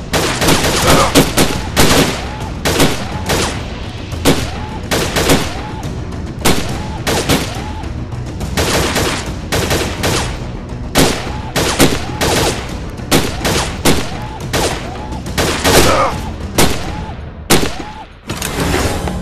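A rifle fires repeated sharp shots.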